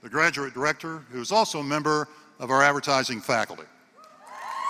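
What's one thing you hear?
An older man speaks with animation through a microphone in a large hall.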